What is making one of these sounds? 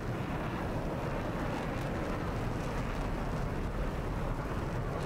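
A jet engine roars steadily as a fighter jet flies past.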